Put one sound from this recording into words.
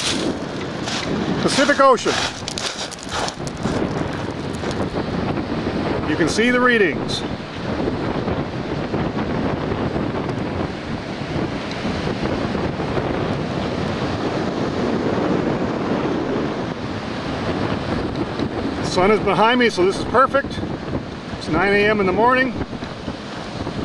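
Ocean waves roll and crash steadily onto a beach.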